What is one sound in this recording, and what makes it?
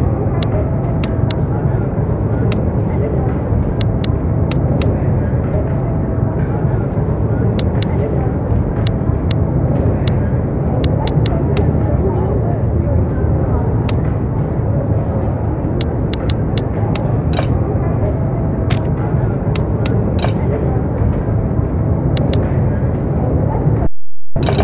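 Short electronic menu clicks tick quickly, one after another.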